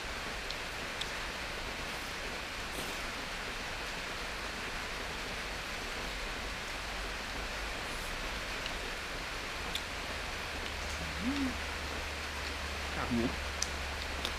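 Chopsticks click against a plate.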